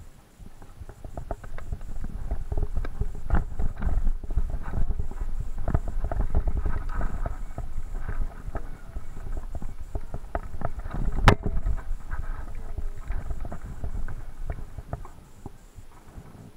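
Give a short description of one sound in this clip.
A mountain bike rattles and clatters down a rocky gravel trail.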